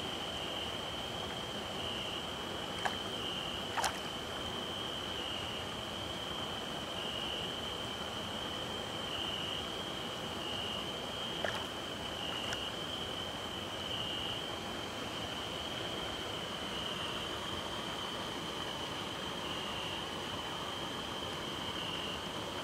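Water splashes softly as a hand moves through it.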